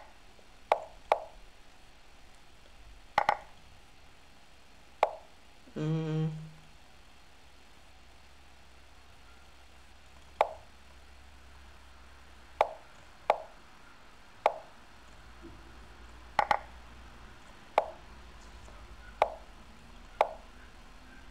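Short wooden clicks sound as chess moves are played.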